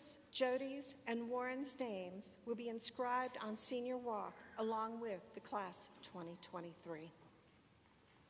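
An older woman speaks calmly into a microphone in a large hall.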